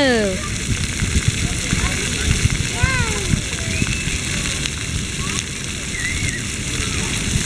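Fountain jets splash and spray steadily outdoors.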